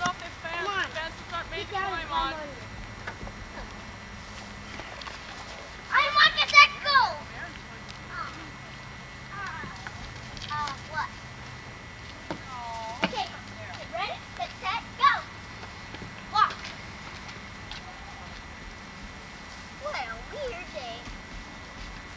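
A woman talks nearby in a high, cheerful voice.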